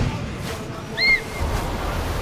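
An eagle gives a sharp, high screech.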